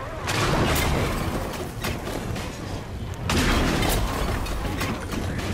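Fires roar and crackle.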